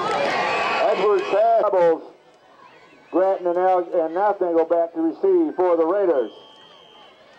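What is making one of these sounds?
Young people chant loudly in unison from the sidelines.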